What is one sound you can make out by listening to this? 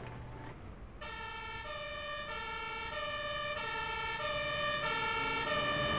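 A fire engine siren wails with a two-tone call, growing louder as it approaches.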